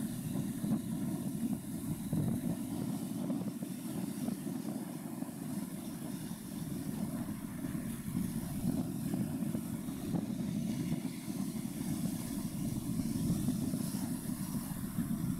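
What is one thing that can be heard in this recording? Choppy water laps and splashes nearby.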